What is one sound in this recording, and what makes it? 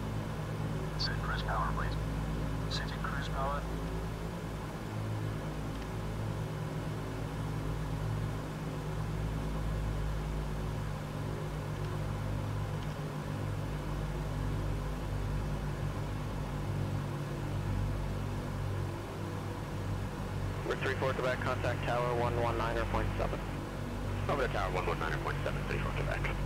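Aircraft engines drone steadily with a low hum.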